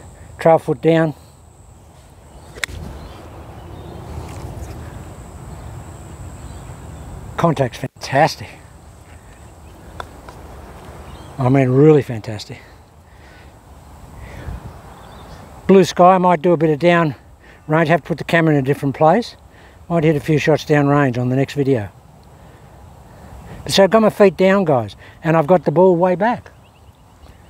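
A man talks calmly nearby.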